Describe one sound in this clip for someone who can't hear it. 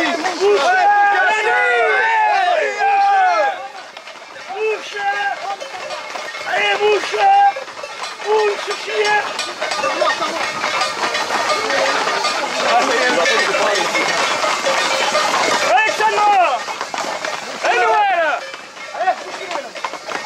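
A crowd of men shout and call out outdoors.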